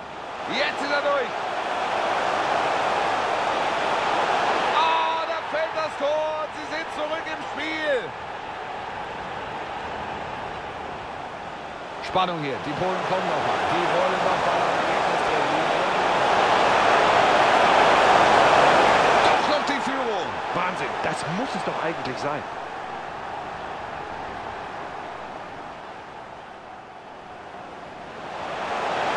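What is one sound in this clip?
A large stadium crowd roars and cheers, swelling to a loud peak.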